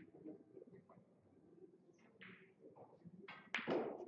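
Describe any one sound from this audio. Billiard balls knock together and roll across the table.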